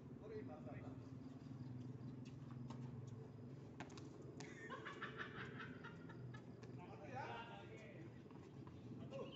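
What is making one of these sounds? Tennis balls bounce on a hard court.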